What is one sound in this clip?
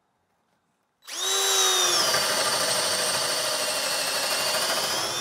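A cordless drill whirs steadily as it bores into wood.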